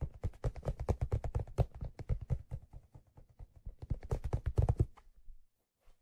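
Fingers tap and scratch on a felt hat close to a microphone.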